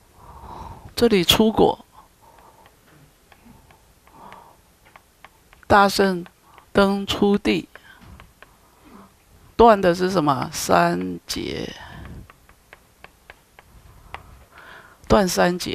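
An elderly man speaks calmly through a headset microphone, in bursts with pauses.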